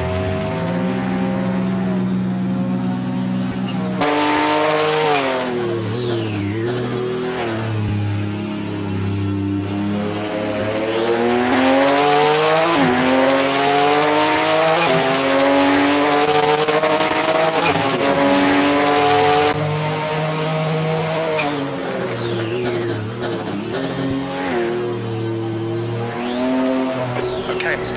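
A racing car engine roars, revving up and down through gear changes.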